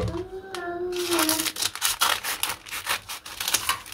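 Scissors snip through paper.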